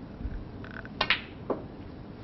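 A cue tip strikes a snooker ball with a sharp click.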